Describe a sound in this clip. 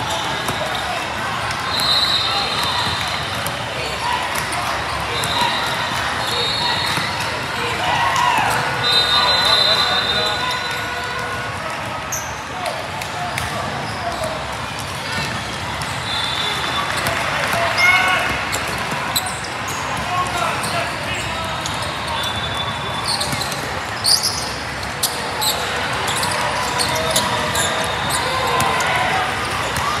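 A crowd of spectators chatters steadily.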